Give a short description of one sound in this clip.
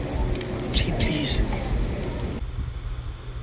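A woman speaks in a film clip heard over a call.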